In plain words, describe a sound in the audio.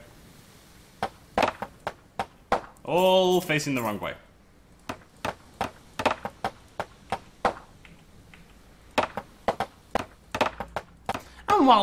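Wooden pieces click into place one after another.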